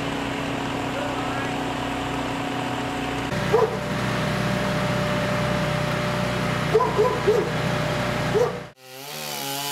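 A crane engine hums steadily.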